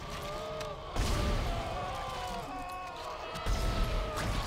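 A weapon fires sharp blasts.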